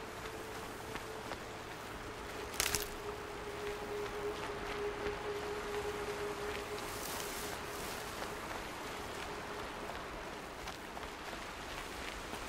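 Footsteps rustle through grass and stones.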